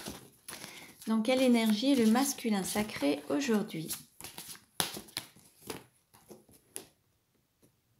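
Playing cards shuffle and rustle in hands.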